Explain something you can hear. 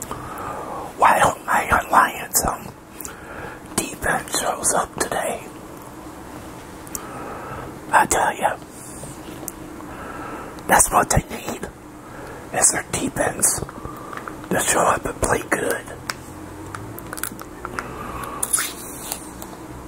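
An older man speaks close to a microphone, in short bursts.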